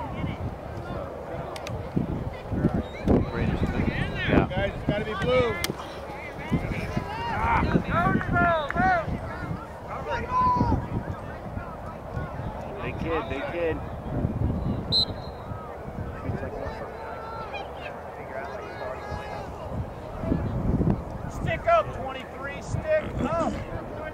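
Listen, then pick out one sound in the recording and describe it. Young people shout and cheer from a distance across an open field.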